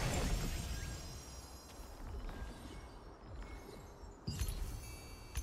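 Game menu buttons click with soft chimes.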